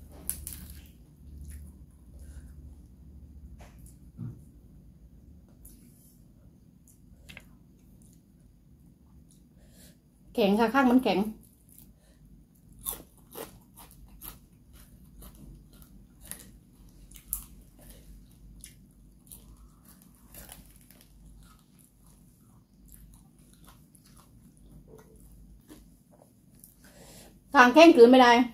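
A woman chews and crunches food close up.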